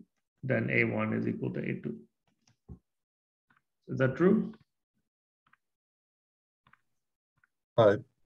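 A man speaks calmly over a microphone, in short phrases with pauses.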